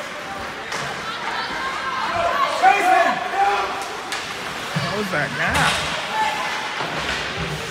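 Spectators nearby chatter and call out.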